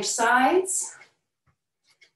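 A woman speaks briefly and loudly nearby.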